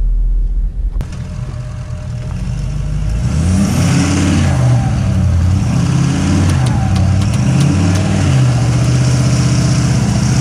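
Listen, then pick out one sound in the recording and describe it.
A truck engine revs up and down loudly.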